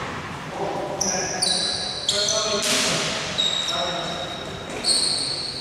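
Sneakers squeak sharply on a hard court in an echoing hall.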